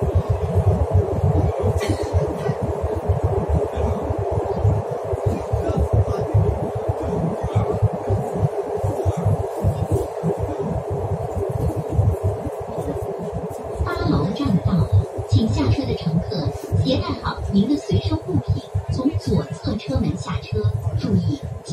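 A train rumbles and roars steadily along the track.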